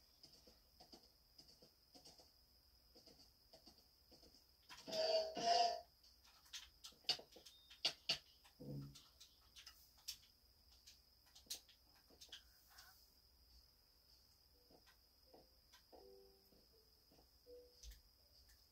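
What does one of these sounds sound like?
Blocky video game sound effects, short clicks and thuds, play quietly from a television speaker.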